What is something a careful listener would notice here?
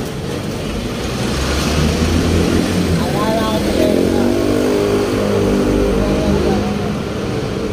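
A truck's engine rumbles loudly close by, then passes.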